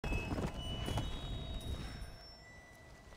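A horse gallops with heavy hoof thuds.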